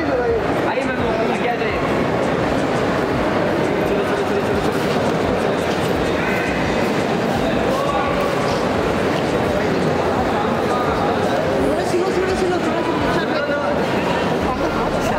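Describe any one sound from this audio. Several men shout and call out nearby, overlapping one another.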